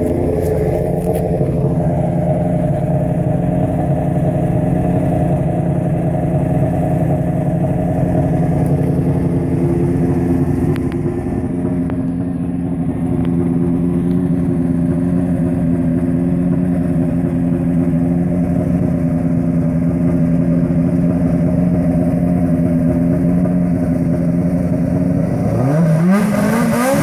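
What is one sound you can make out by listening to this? A race car engine idles with a deep, steady rumble.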